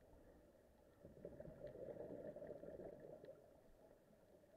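Air bubbles gurgle and burble underwater.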